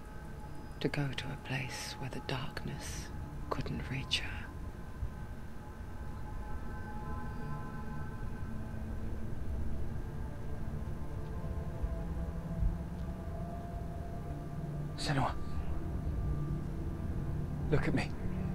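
A young man speaks softly into a microphone.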